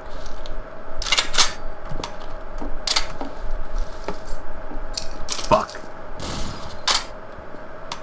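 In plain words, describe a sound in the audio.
A gun clicks and clacks as it is reloaded.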